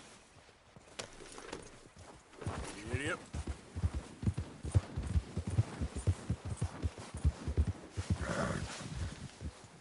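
A horse's hooves thud steadily through snow.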